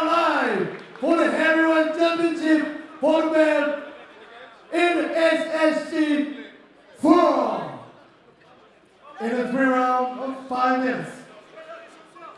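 A man announces loudly over a loudspeaker in a large echoing hall.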